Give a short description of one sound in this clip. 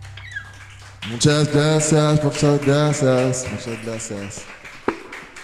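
A man sings loudly into a microphone in a reverberant room.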